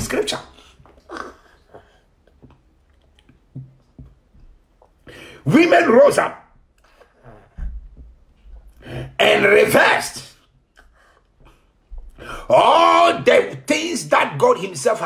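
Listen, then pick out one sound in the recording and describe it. A man speaks with feeling into a close microphone, in bursts with pauses.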